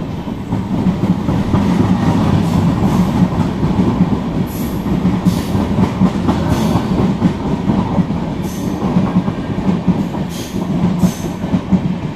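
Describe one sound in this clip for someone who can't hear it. A passenger train rumbles steadily along the tracks close by.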